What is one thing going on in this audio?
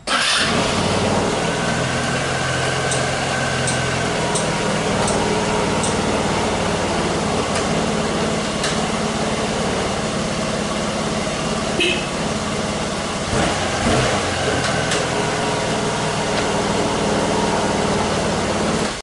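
A scooter engine idles steadily nearby.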